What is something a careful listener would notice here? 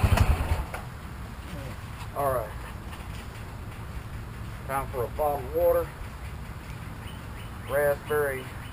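A utility vehicle engine idles nearby.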